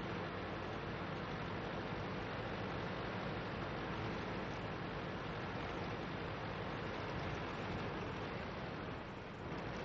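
A light tank's engine rumbles as the tank drives.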